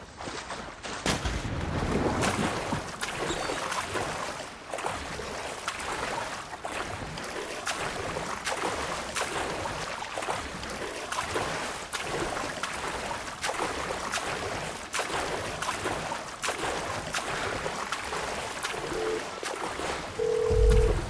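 Water splashes and sloshes with steady swimming strokes.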